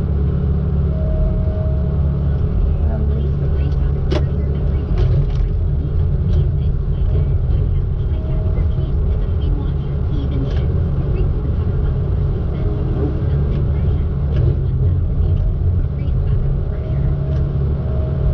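Hydraulics whine briefly now and then.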